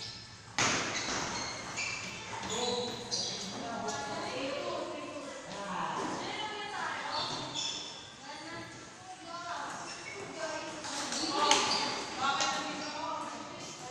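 A ping pong ball clicks back and forth on paddles and a table.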